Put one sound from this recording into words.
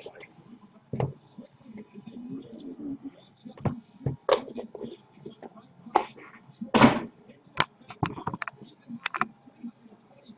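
Cardboard boxes knock and rustle as they are handled on a table.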